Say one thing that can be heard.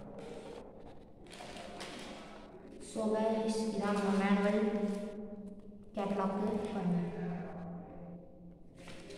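Paper and plastic packaging rustle and crinkle close by.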